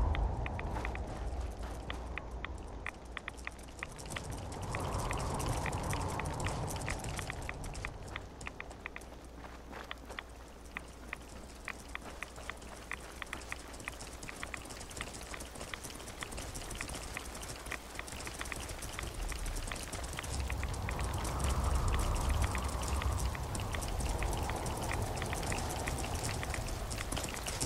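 Footsteps crunch steadily on gravel.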